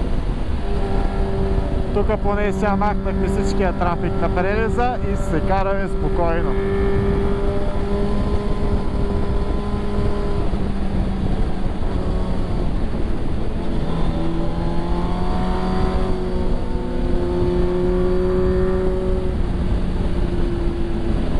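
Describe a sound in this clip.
A motorcycle engine drones steadily, rising and falling in pitch as it shifts.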